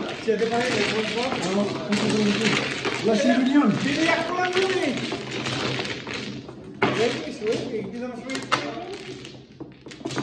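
Mahjong tiles clatter and click as they are shuffled across a table.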